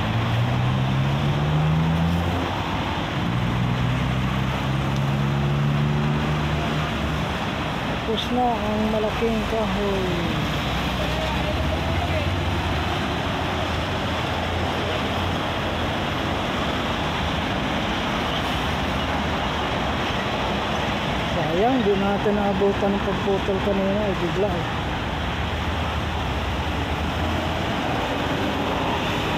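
Traffic passes on a busy road outdoors.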